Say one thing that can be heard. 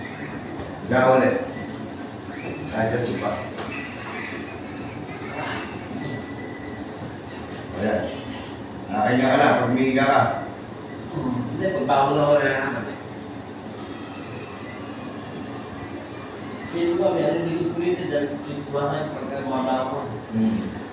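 A man speaks calmly close by, in short phrases.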